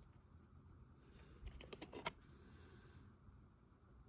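A disc is lifted from a plastic case with a soft click.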